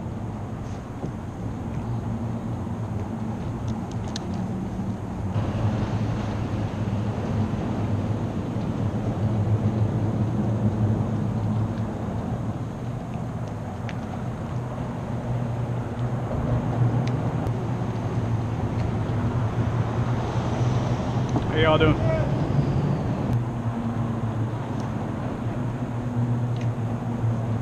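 Water laps against a kayak hull.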